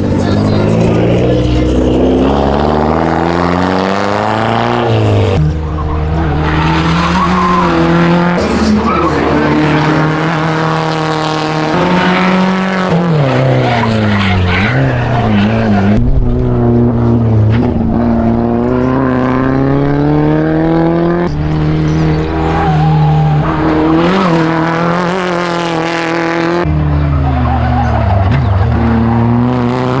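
A car engine revs hard, rising and falling in pitch as the car speeds around the track.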